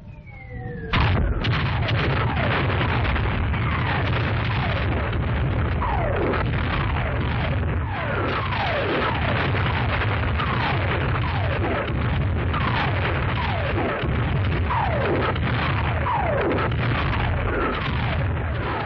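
Shells explode with deep booming blasts nearby.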